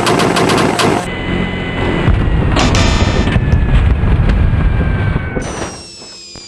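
A car crashes and tumbles with loud crunching impacts.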